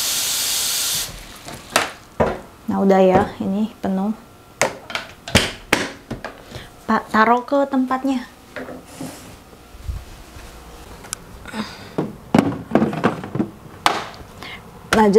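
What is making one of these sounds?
Plastic clatters and knocks as a container is handled.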